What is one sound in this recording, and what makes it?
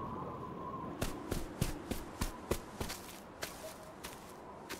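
Footsteps tap steadily on hard ground close by.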